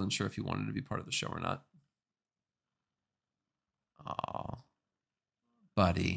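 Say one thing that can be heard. A man speaks calmly and close into a microphone, with short pauses.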